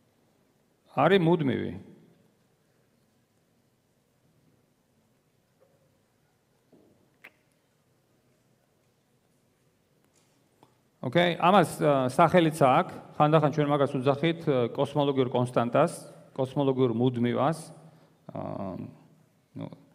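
A man speaks through a microphone in a large echoing hall, with long pauses.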